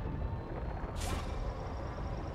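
A laser beam fires with a sharp zap.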